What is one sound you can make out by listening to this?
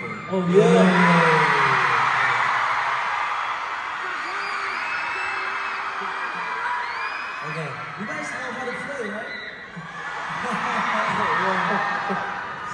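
A crowd screams and cheers loudly in a large echoing hall.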